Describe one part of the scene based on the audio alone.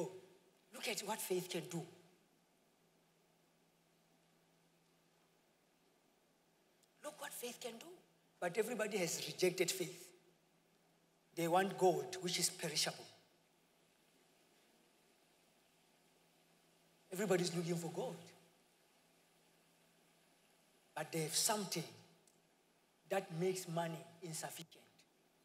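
A man speaks with animation through a microphone in a large echoing hall, pausing between phrases.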